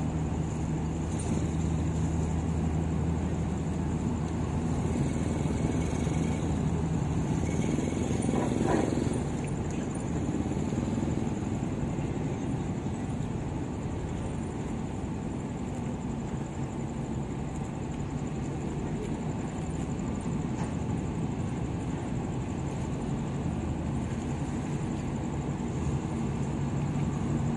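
A ship's engine hums low and steady nearby.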